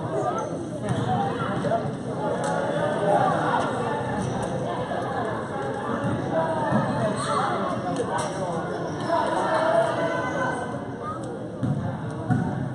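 A crowd of spectators chatters throughout a large echoing gym.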